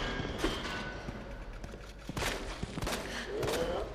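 A pistol fires several sharp shots.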